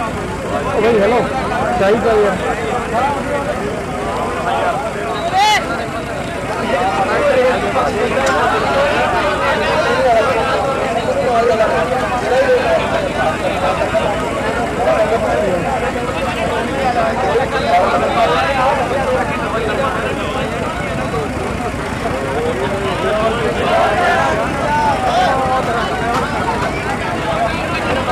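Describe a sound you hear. A crowd of men talks and shouts outdoors all at once.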